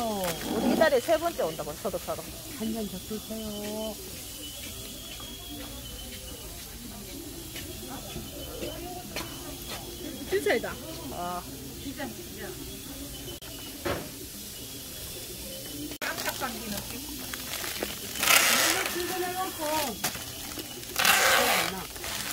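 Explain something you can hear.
A woman talks casually nearby.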